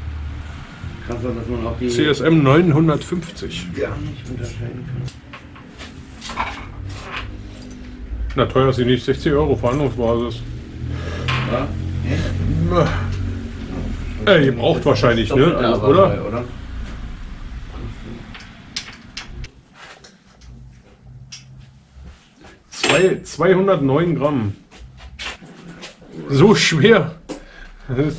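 A man talks up close into a microphone, casually and with animation.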